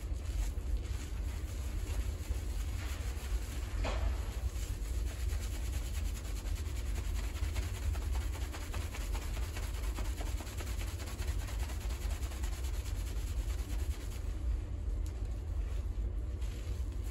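Fingers scrub soapy hair with soft, wet squishing.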